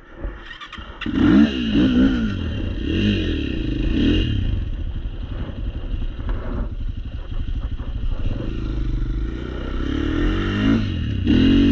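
Tyres crunch over loose dirt.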